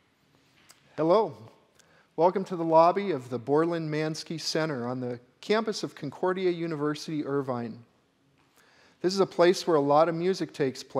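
A middle-aged man speaks calmly and clearly into a microphone, close by.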